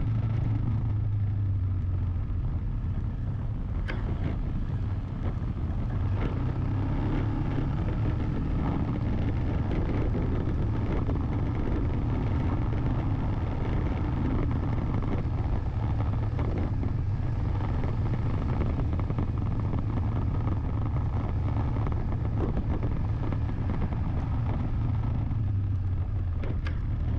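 Tyres roll steadily over a paved road.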